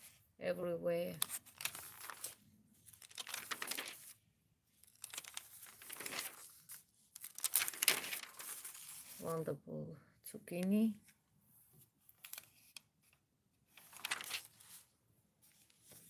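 Glossy magazine pages rustle and flip as they are turned.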